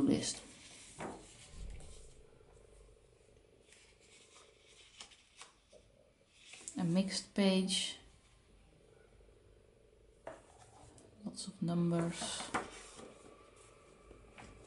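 Paper pages rustle as they are turned by hand.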